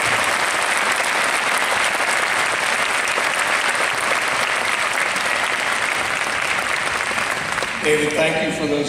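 A large crowd applauds in a big echoing hall.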